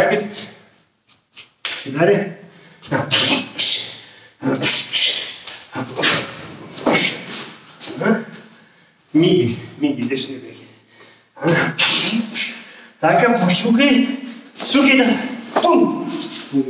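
A middle-aged man speaks with animation close by, in a room with some echo.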